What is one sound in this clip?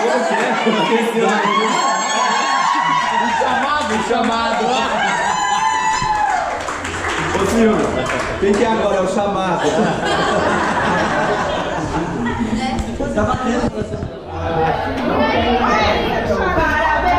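A crowd of women chatters and cheers.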